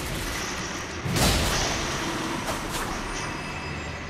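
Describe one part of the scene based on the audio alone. A blade slashes and strikes with a heavy thud.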